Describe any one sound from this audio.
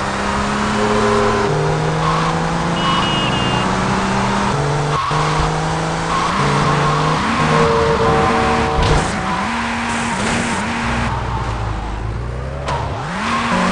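A car engine roars and rises in pitch through repeated gear changes.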